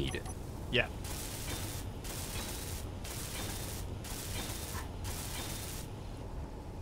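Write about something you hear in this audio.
A welding torch hisses and crackles in short bursts.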